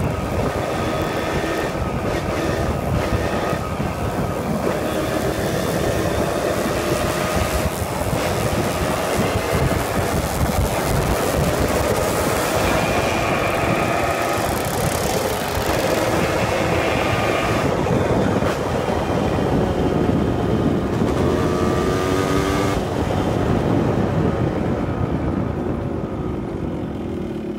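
Wind rushes over the microphone.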